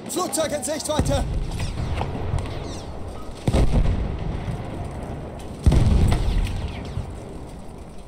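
Explosions boom nearby with heavy low rumbles.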